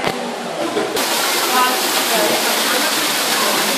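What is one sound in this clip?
A waterfall splashes and roars close by.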